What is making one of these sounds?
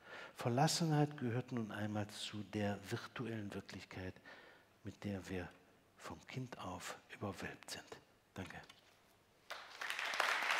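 An elderly man speaks calmly into a microphone in an echoing hall.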